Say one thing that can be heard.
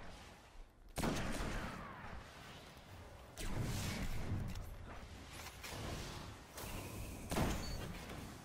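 A rifle fires with loud, sharp cracks.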